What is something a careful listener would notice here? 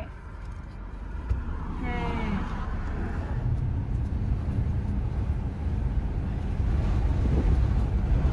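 A car drives along a road, heard from inside with a low road rumble.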